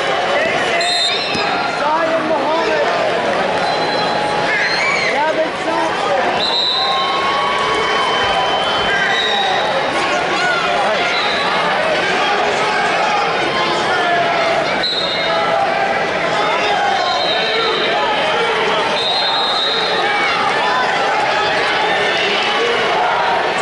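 A large crowd chatters and cheers, echoing in a big hall.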